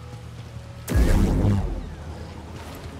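A lightsaber ignites with a loud burst.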